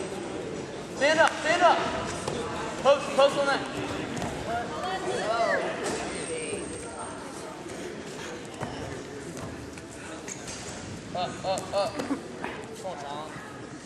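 Men shout loudly in a large echoing hall.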